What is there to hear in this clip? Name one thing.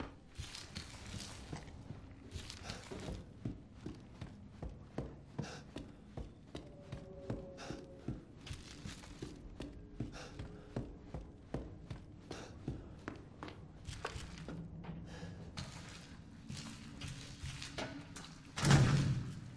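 Footsteps thud steadily on wooden and concrete floors.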